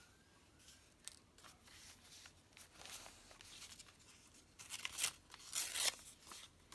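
Paper rustles and crinkles under hands close by.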